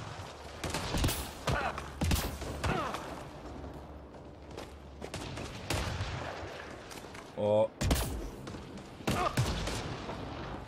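Gunshots crack in short bursts with a ringing echo.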